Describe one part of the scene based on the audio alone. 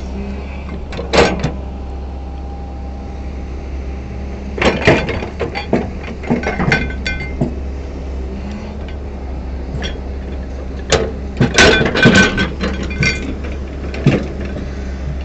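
A metal excavator bucket scrapes and clanks against sand and gravel.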